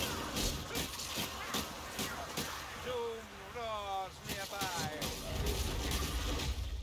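Blades slash and thud into creatures in quick, repeated blows.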